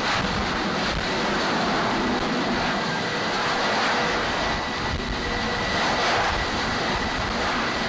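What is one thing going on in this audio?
A jet engine roars loudly as a jet launches off a ship's deck.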